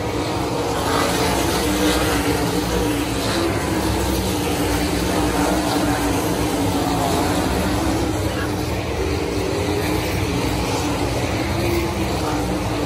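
Race car engines roar loudly as cars speed around a dirt track.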